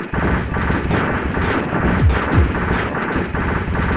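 Explosions boom with low, falling rumbles.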